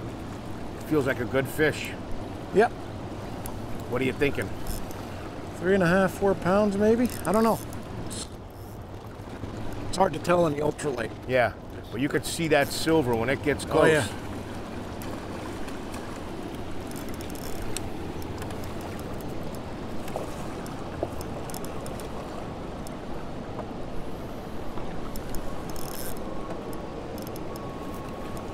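River water rushes and laps steadily against a boat.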